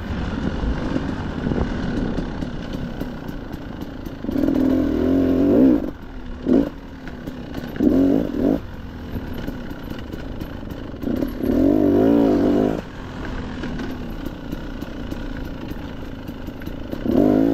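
Knobby tyres crunch over dry leaves and dirt.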